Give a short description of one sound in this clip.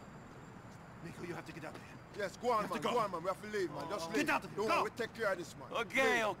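A man urges someone to leave, speaking with urgency.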